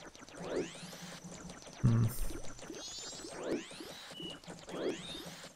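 A sword whooshes in quick sweeping spins, again and again.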